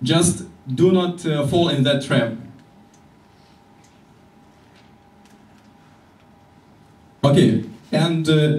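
A man speaks calmly, pausing between phrases.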